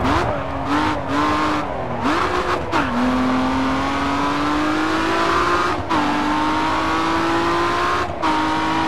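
A car engine roars and revs up through the gears, dipping with each gear change.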